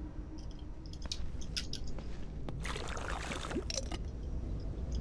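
Footsteps scuff softly on pavement.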